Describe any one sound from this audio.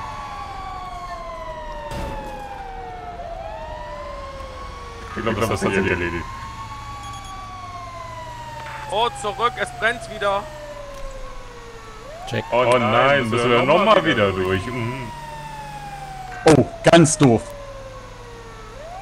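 A fire truck siren wails, rising and falling in long sweeps.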